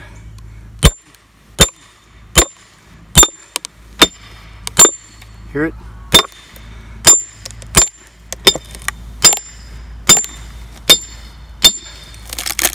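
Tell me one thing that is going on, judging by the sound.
A hammer strikes the back of an axe head in sharp, ringing metal blows.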